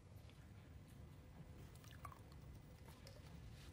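A young woman bites into a chocolate.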